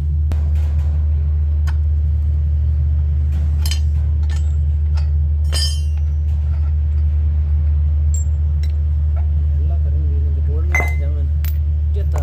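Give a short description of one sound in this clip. A wrench clanks against metal parts.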